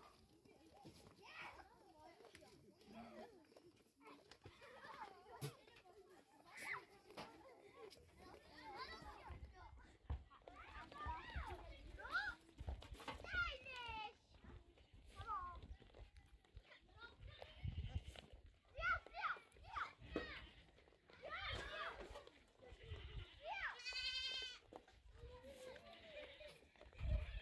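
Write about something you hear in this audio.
Goats bleat.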